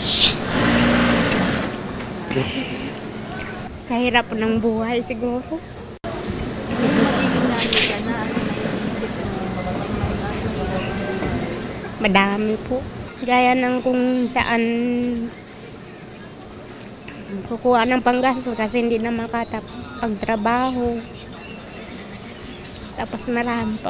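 A woman speaks tearfully into a close microphone, her voice breaking.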